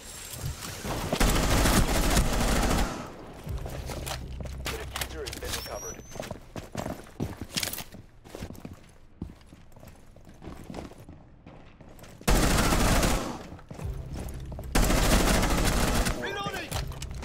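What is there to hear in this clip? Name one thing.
Gunfire from a game rattles in loud bursts.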